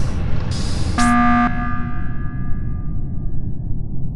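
A game alarm blares loudly for an emergency.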